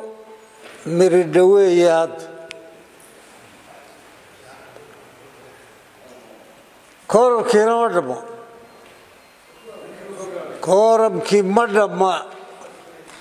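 An elderly man speaks slowly and deliberately into a microphone, in short bursts with pauses.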